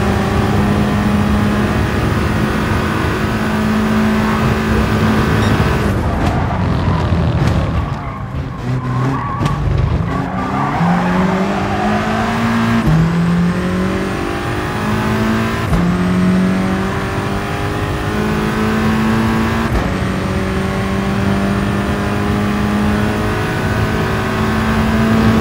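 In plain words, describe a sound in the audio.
A race car engine roars loudly at high revs, climbing in pitch and dipping with each quick gear change.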